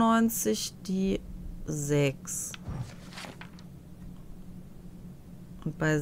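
A book page turns with a soft rustle.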